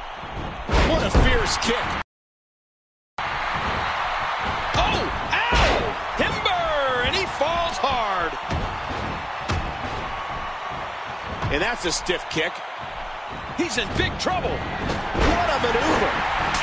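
Wrestlers' bodies thud heavily onto the ring mat.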